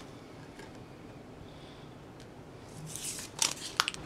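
Paper slides and rustles under hands.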